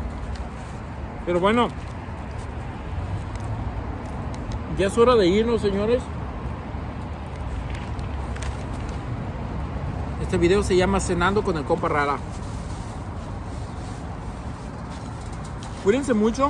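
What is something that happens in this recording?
Paper wrapping rustles and crinkles.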